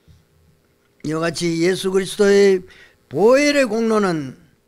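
An elderly man speaks slowly in a drawn-out voice through a microphone.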